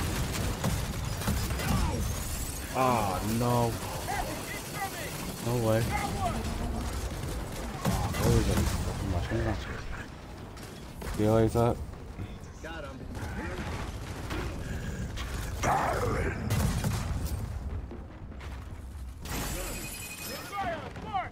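Rapid gunfire bangs and crackles.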